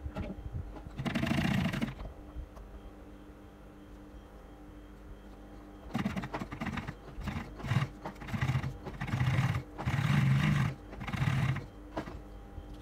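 A sewing machine runs in short bursts of rapid stitching.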